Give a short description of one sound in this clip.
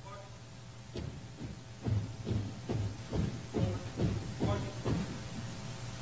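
Boots stamp in a rhythm as a color guard marches.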